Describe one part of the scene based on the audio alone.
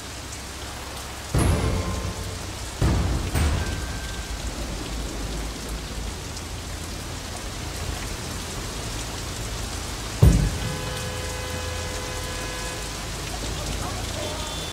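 Rain falls steadily on a street.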